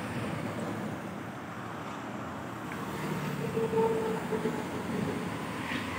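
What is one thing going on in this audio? A motorbike engine hums close by.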